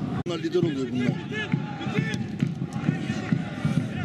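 A football thuds as a player kicks it.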